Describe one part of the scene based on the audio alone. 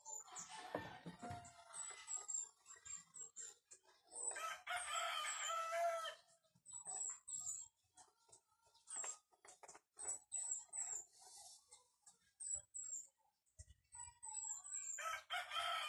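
Plastic pipe parts click and knock as they are handled.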